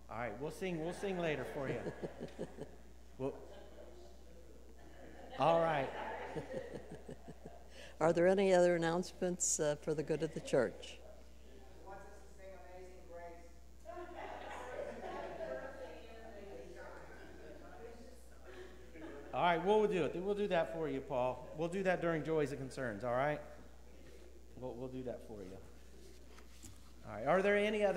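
An elderly woman speaks calmly through a microphone, pausing between phrases.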